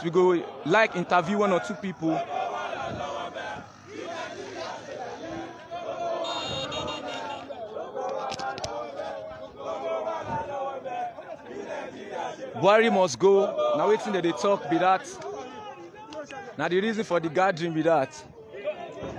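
A young man shouts close by.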